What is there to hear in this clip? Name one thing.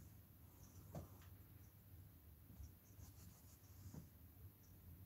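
Small objects knock lightly on a table.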